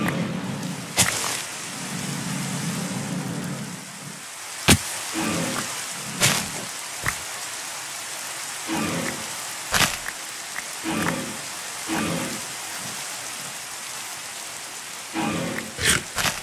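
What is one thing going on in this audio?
Leaves and wooden blocks break with short crunching pops.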